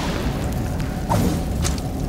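A blade swishes through the air with a sharp slash.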